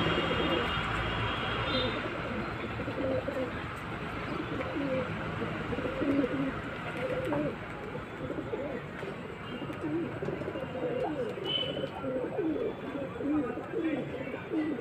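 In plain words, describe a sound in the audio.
Pigeons coo in low, warbling calls close by.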